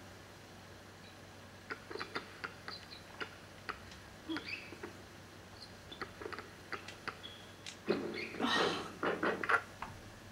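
Sneakers squeak sharply on a basketball court.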